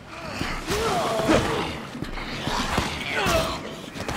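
A scuffle breaks out with heavy thuds.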